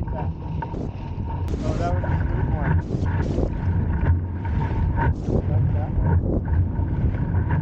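Water splashes and rushes against the hull of a small boat.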